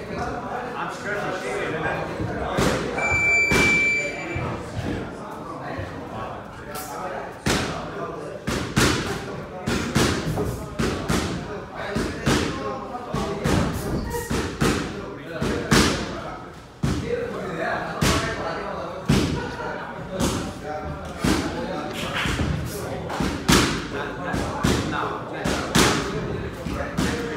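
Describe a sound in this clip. A man exhales sharply with each punch thrown.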